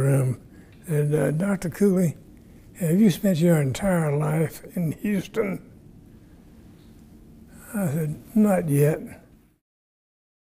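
An elderly man speaks calmly and close to a microphone.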